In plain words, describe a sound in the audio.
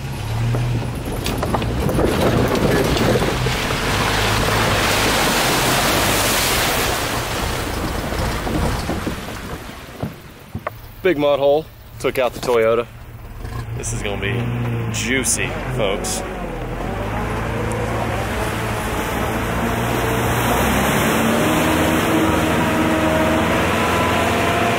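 Tyres splash and churn through mud and water.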